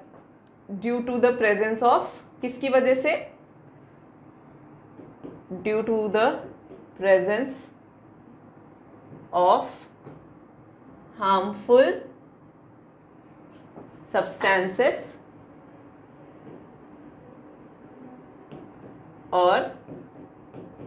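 A young woman speaks calmly and clearly, close to a microphone, in short phrases.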